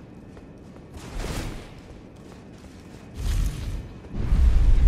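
A sword swings through the air.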